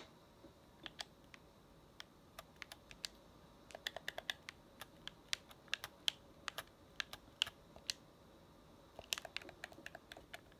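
Short menu clicks tick in quick bursts.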